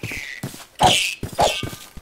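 A sword strikes a creature with a heavy thud.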